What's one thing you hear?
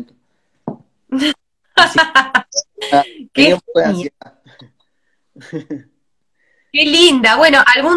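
A woman laughs through an online call.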